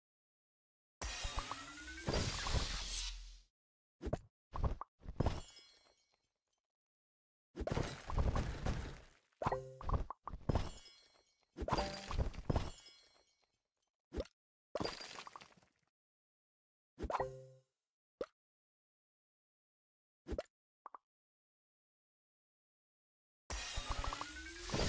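Cheerful game chimes and bursts of sound play as pieces match and clear.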